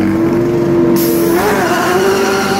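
A pneumatic wheel gun whirs in a short burst.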